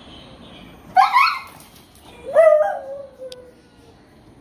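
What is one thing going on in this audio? A dog barks loudly nearby.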